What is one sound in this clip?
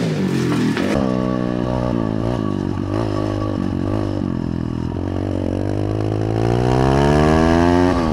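A small motorbike engine buzzes and revs up while riding.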